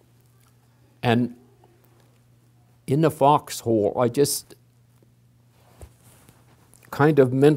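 An elderly man speaks slowly and haltingly, close to a microphone.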